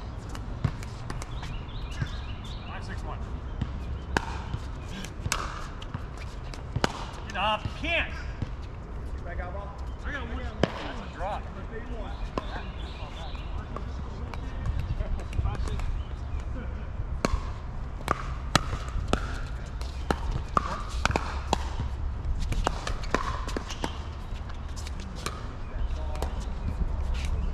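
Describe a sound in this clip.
Adults call out and talk across the courts, some distance away.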